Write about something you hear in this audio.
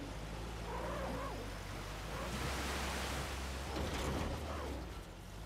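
Water splashes as a vehicle drives through a stream.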